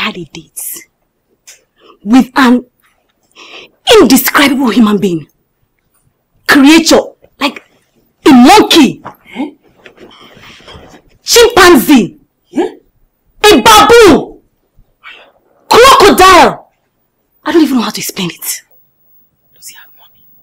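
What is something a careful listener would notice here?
A young woman speaks nearby with animation, in agitated bursts.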